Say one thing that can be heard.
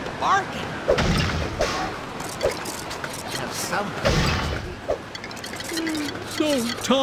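Objects smash and clatter apart.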